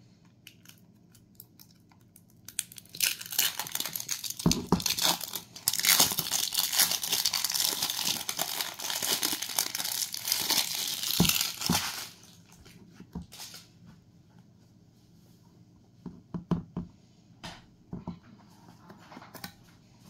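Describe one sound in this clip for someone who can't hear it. A metal lid twists and clicks on a jar.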